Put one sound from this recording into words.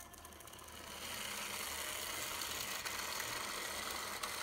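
A model train rolls along metal track with a soft whirring hum.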